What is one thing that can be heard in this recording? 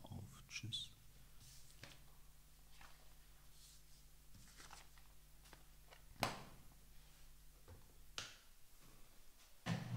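Paper rustles as pages are turned.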